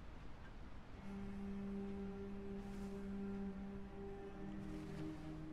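An electronic detector gives off steady, droning tones.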